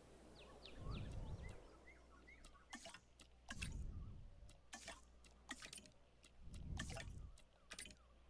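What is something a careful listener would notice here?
Soft interface clicks sound as menu options are picked.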